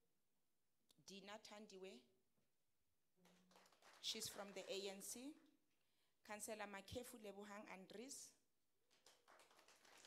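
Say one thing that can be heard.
A middle-aged woman reads aloud calmly into a microphone.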